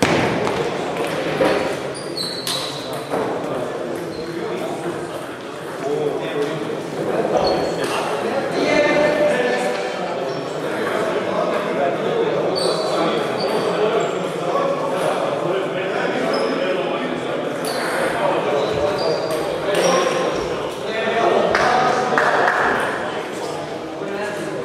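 Several people talk and call out, echoing around a large hall.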